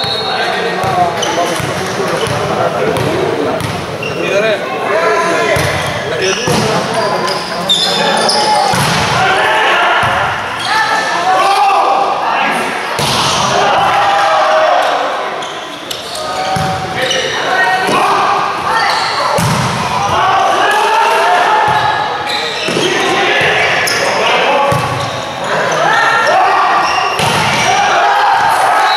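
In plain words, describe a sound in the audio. A volleyball is struck hard again and again, with sharp smacks in a large echoing hall.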